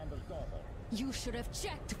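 A young woman speaks angrily up close.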